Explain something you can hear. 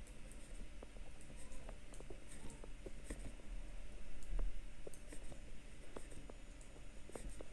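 Metal knitting needles click and tap softly together.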